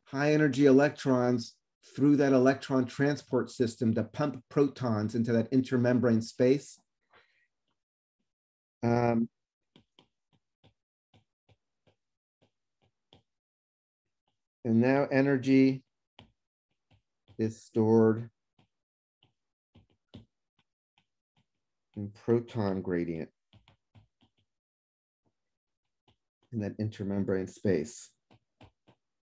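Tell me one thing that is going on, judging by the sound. A man speaks calmly through a microphone, pausing often.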